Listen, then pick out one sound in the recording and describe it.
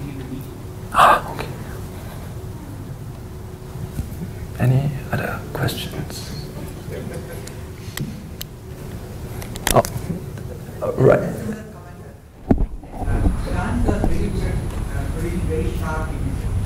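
A young man speaks haltingly through a microphone, pausing between phrases.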